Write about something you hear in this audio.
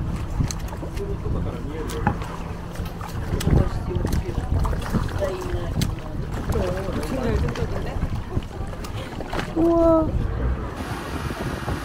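Water laps against the side of a boat.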